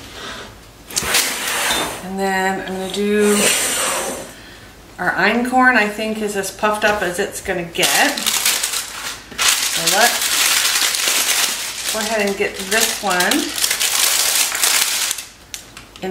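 Paper crinkles and rustles.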